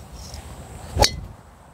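A golf club strikes a golf ball with a sharp click.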